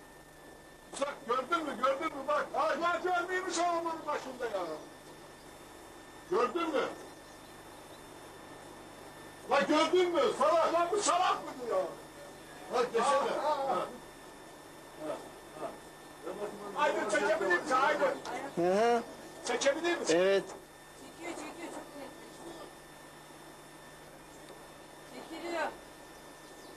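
A man speaks calmly into a microphone, with pauses.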